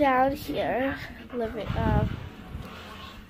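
A girl talks close by with animation, her voice rising and falling.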